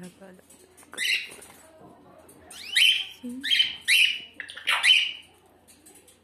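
A small bird chirps loudly in short, bright bursts.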